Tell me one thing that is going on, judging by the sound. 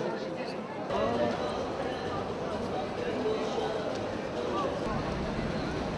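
A crowd of people chatters on a busy street.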